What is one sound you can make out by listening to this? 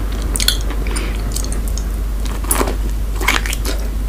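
A woman bites into a sausage with a crisp snap.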